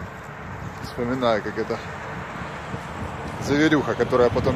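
A young man talks close to the microphone, outdoors in light wind.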